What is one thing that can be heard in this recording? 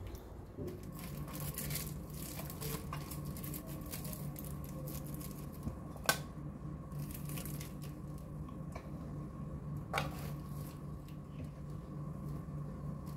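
A plastic bag crinkles as it is handled.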